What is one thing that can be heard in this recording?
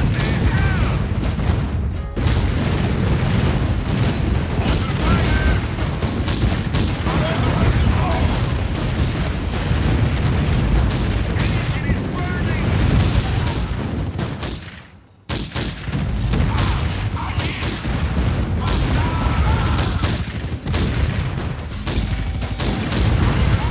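Explosions boom and rumble in a game.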